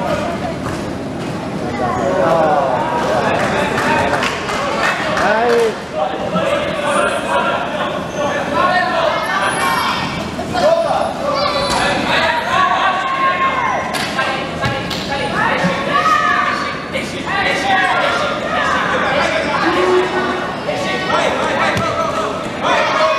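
Players call out and shout to each other in a large echoing hall.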